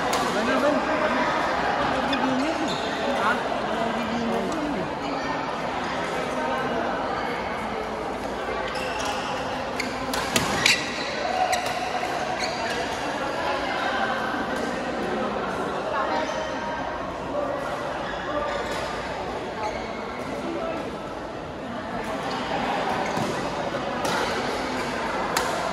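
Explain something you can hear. Rackets hit shuttlecocks with sharp pops across a large echoing hall.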